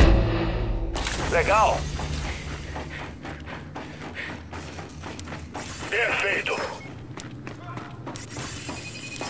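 Heavy armoured footsteps clank on metal.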